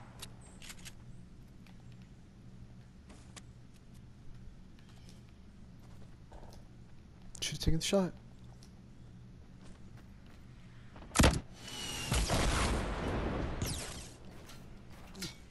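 Wooden building pieces snap into place with short game clicks.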